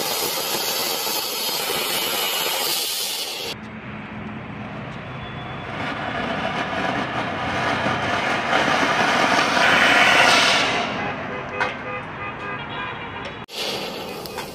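A firework fountain hisses and crackles loudly.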